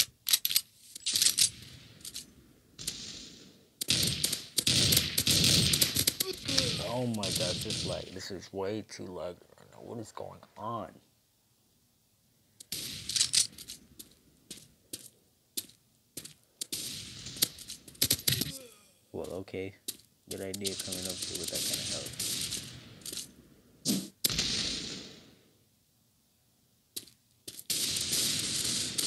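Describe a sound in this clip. Automatic gunfire rattles in quick bursts.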